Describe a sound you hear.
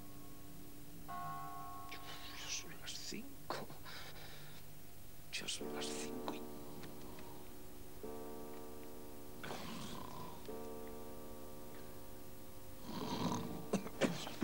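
Bedding rustles as a person tosses in bed.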